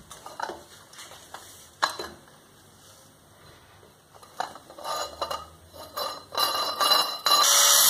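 A metal bar clanks against a metal stand.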